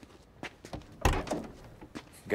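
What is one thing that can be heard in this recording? A car door opens with a heavy clunk.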